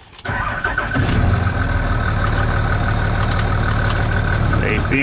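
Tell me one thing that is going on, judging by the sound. A diesel truck engine idles with a steady low rumble.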